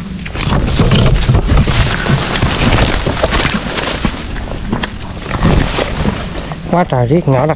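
Leaves and twigs rustle and crackle close by as branches are brushed aside.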